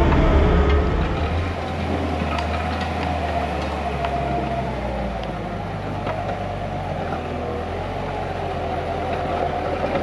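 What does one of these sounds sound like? A small loader's engine runs nearby as it works.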